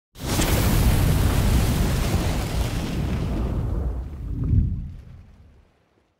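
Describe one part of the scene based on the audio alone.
Fire roars with a deep rumble, then fades away.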